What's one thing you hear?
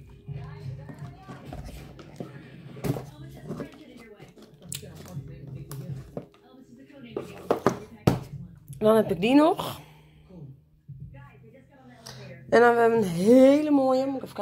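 Cardboard boxes knock and rustle as hands handle them.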